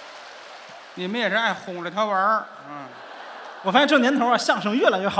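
A second middle-aged man speaks lively through a microphone.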